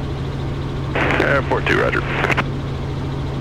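A man speaks briefly over a headset intercom.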